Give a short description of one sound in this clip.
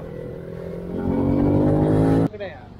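A motorcycle engine revs up sharply.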